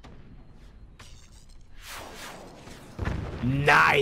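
A cannon fires with a deep boom.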